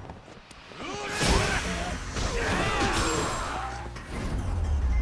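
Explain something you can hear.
Men shout and grunt while brawling up close.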